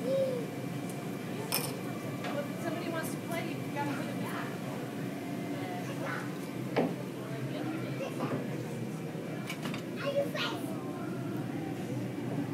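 A toddler babbles nearby.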